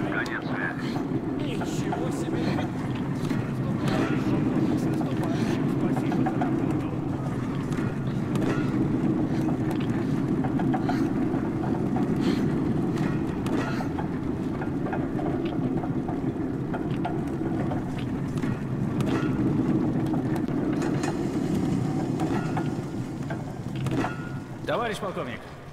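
A handcar rumbles steadily along rails.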